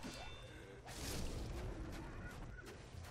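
A fireball bursts with a fiery whoosh.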